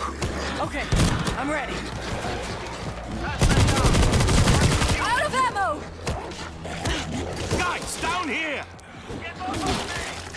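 Zombies snarl and groan up close.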